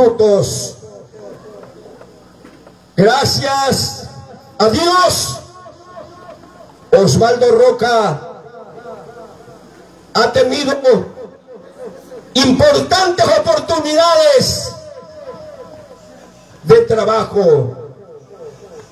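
A man speaks with animation into a microphone over a loudspeaker, in bursts with pauses.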